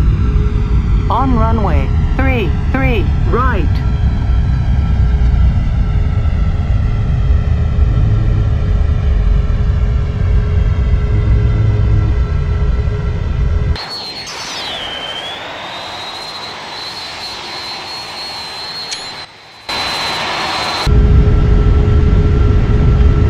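Jet engines roar loudly and steadily from inside a cockpit.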